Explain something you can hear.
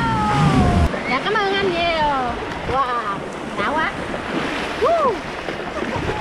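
A woman laughs and shrieks with excitement close by.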